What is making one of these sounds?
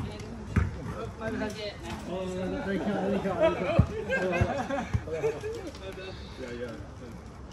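Young men talk and call out to each other during play.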